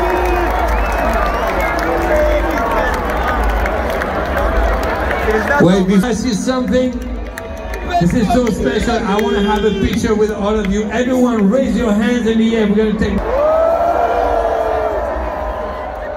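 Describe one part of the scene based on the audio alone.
A large crowd sings along loudly, close by, outdoors.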